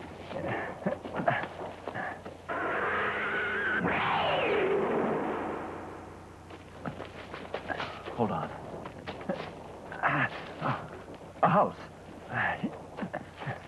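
Leaves and brush rustle as people scramble over rocks.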